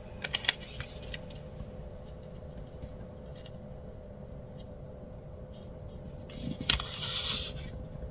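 Sticker backing paper crinkles softly as it is peeled.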